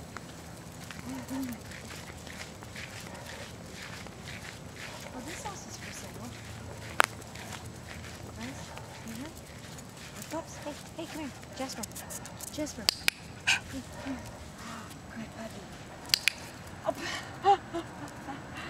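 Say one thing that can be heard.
Sandals slap softly on pavement with each step.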